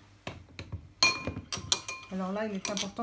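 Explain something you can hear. A spoon clinks and scrapes in a glass bowl.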